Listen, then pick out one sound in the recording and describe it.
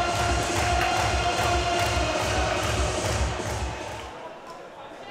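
A crowd claps in steady rhythm in a large echoing hall.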